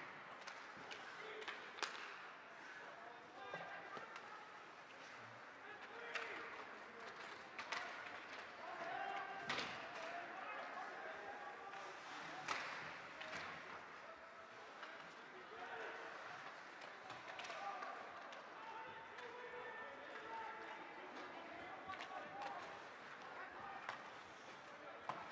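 A crowd of spectators murmurs in an echoing rink.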